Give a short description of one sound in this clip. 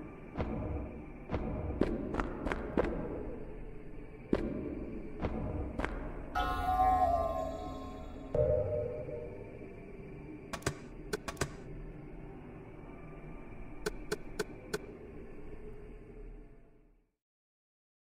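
Low game music drones steadily, then cuts off.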